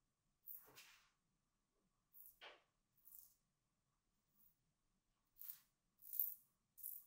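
A razor scrapes through stubble in short, crisp strokes.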